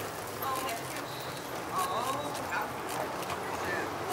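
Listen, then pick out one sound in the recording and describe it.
A bicycle rolls past on cobblestones.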